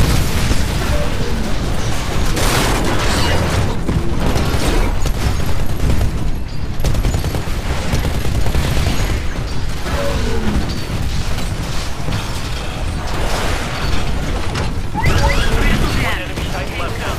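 Heavy mechanical footsteps thud and clank.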